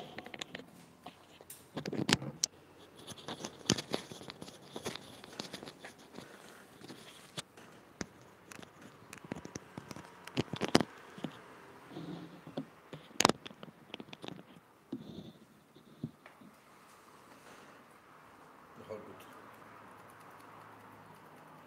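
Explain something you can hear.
Scissors snip close by, in quick sharp cuts.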